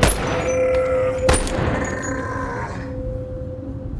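A gun fires a loud shot with a ringing echo.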